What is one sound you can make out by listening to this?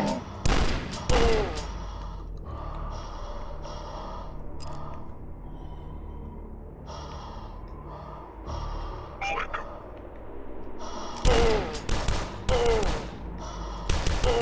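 Shotguns fire loud booming blasts in quick pairs.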